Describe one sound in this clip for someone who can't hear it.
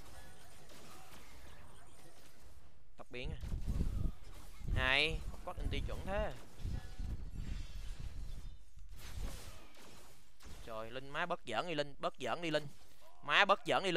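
Game spells and attacks whoosh and crash.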